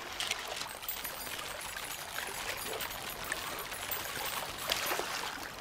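Light footsteps patter quickly over soft ground.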